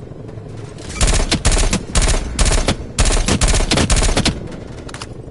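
A rifle fires in rapid bursts of loud gunshots.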